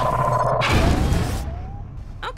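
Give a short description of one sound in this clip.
A gun fires with a loud blast and a rumbling echo.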